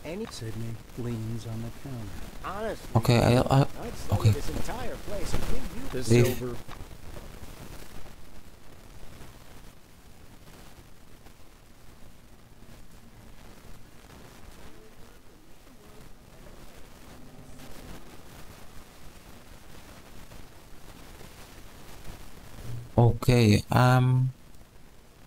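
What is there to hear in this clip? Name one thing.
A young man talks into a close microphone, casually.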